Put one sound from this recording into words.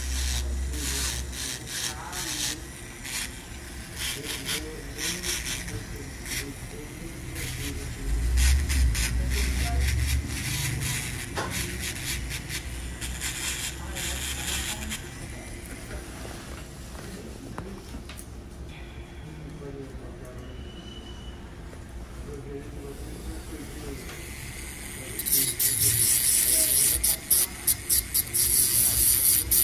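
An electric nail drill whirs and grinds in short bursts.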